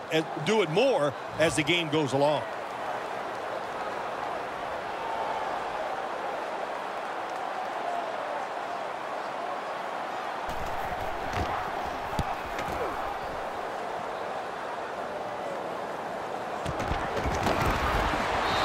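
A large stadium crowd roars steadily and swells louder near the end.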